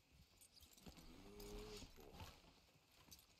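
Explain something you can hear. A horse snorts and whinnies close by.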